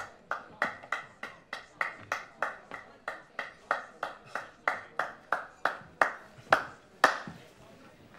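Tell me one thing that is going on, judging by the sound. A man claps his hands in a slow, steady rhythm.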